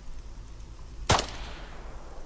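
A rifle shot cracks once, with a short echo.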